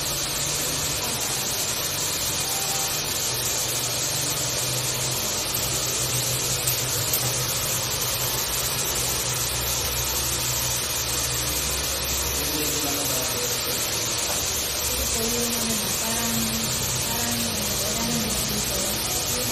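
Hair dryers blow with a steady, loud whooshing roar.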